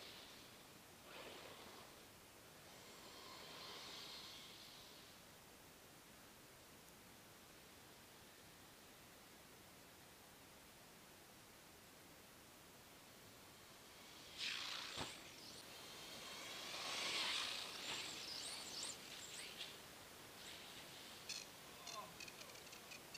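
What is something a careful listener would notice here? A toy car's electric motor whines in bursts as it races over snow.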